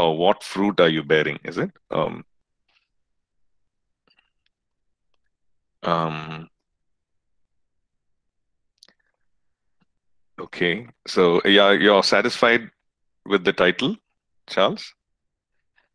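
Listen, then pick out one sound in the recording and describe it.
A middle-aged man speaks calmly in bursts over an online call.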